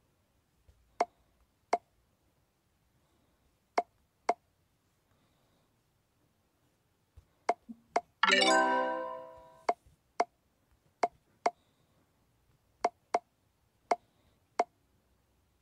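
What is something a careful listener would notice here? Balls click softly as they drop into tubes in a puzzle game.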